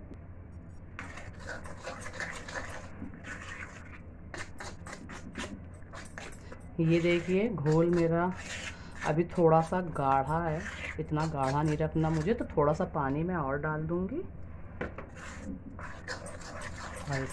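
Hands squish and knead a moist mixture in a pan.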